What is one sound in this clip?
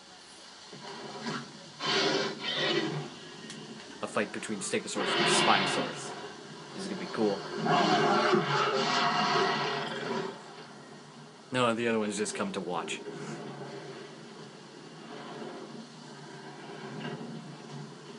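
Dinosaurs growl and roar in a video game.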